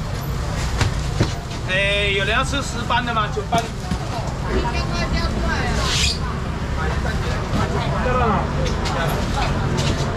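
A busy crowd chatters all around.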